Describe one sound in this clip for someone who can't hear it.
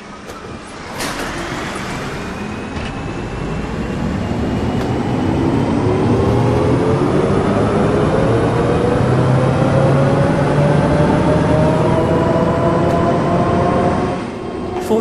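A bus engine revs up and climbs steadily in pitch as the bus pulls away.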